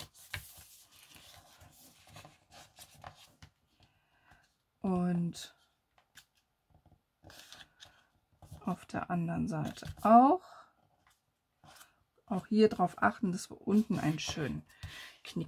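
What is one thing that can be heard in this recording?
Paper crinkles softly as it is folded and creased.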